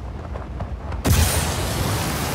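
A body splashes hard into water.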